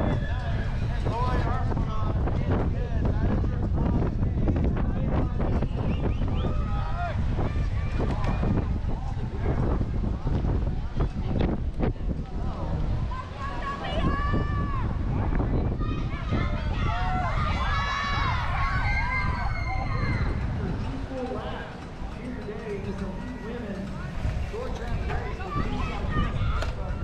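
Bicycle tyres roll over grass and dirt as riders pass.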